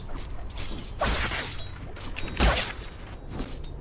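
Magic spells burst with loud whooshing blasts.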